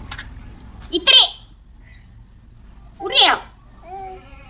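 A small child squeals.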